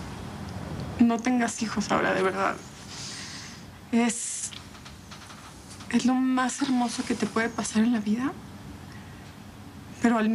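A young woman speaks tearfully and close by.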